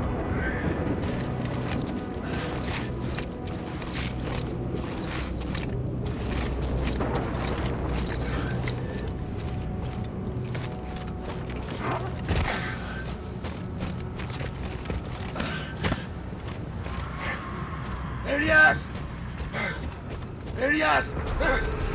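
Strong wind howls steadily.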